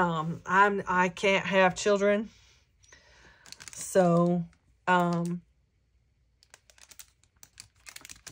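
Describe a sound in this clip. Paper rustles softly as a hand handles it.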